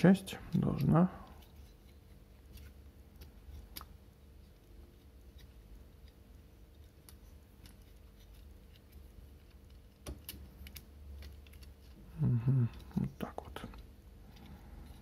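Plastic toy parts click and creak as hands twist and fold them.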